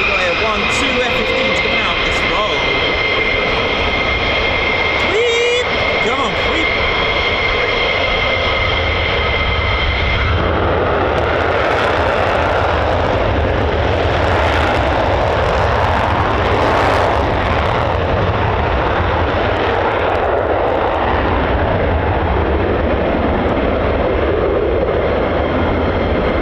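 A jet engine whines loudly, then swells into a thundering roar.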